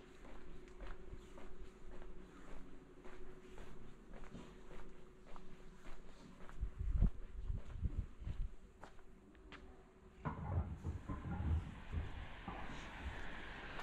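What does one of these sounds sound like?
Footsteps walk steadily on pavement outdoors.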